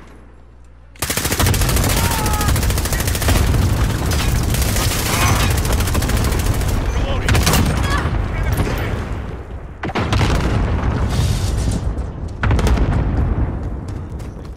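Automatic gunfire rattles in loud rapid bursts.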